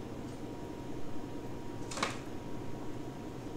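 A sheet of paper rustles as it is handled and unfolded.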